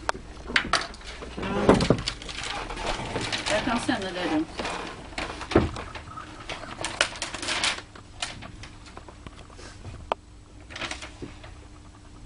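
A large paper map rustles and crackles as it is unfolded.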